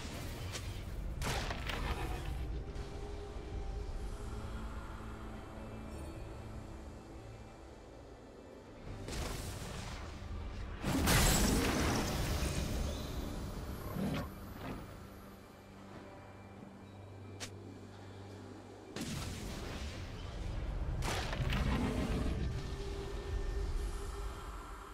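Fantasy game sound effects whoosh and burst now and then.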